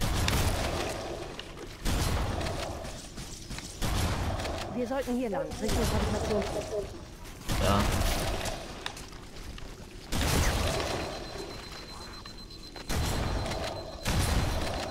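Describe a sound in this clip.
Grenades explode with deep, booming blasts that fade away.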